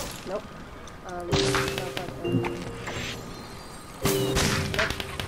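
A bow twangs as arrows are loosed.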